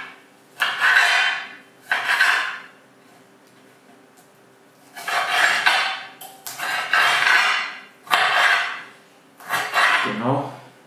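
A knife chops leaves on a board in quick bursts.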